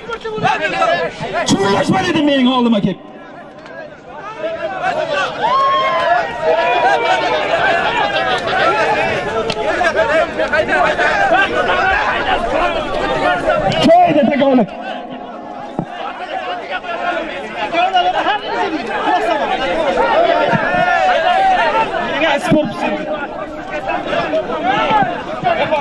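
A large crowd of men shouts and cheers outdoors.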